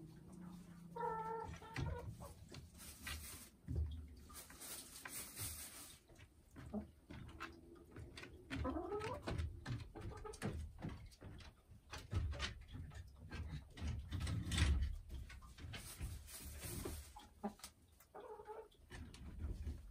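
A hen clucks softly and croons close by.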